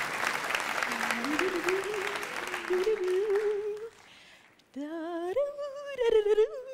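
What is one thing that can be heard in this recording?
A young woman sings through a microphone on stage.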